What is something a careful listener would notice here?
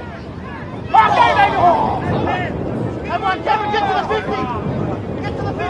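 Players shout to each other across the field.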